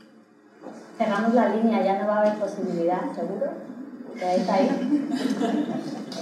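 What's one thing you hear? A woman speaks clearly through a microphone.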